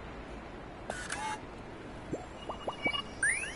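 A rat scurries across wooden boards.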